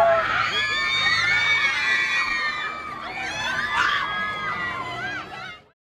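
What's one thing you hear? Young girls scream excitedly close by.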